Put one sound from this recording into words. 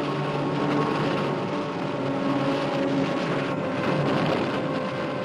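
Waves crash and surge over rocks.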